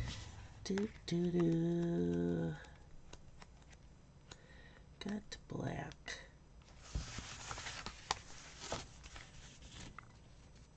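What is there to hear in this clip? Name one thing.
Stiff paper pages rustle as they are leafed through close by.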